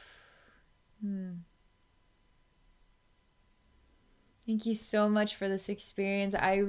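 A woman speaks softly and calmly, close to a microphone.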